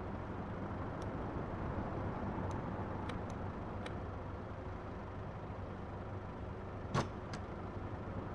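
Switches click now and then.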